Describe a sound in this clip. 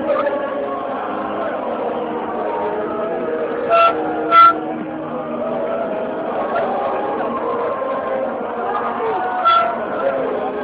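Many voices of men and women chatter and shout nearby.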